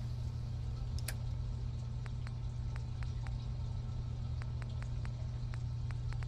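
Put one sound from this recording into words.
Short electronic clicks tick one after another.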